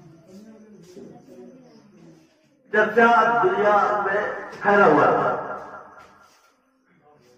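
An elderly man speaks into a microphone over a loudspeaker, his voice rising into loud, drawn-out chanting.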